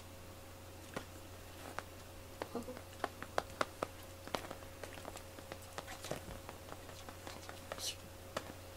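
A cat paws and scratches at fabric, making soft rustling and tapping sounds.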